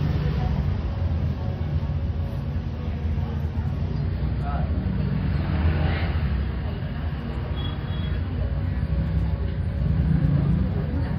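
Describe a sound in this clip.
Guests murmur and chatter nearby.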